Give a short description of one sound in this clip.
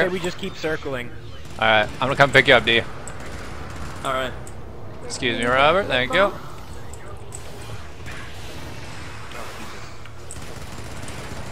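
Laser guns fire with a steady buzzing hum.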